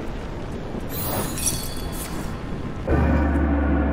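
A bright magical shimmer swells and fades.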